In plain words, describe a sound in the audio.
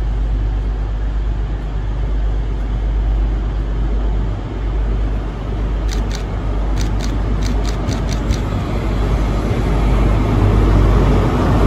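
A diesel train approaches with a rumbling engine that grows louder.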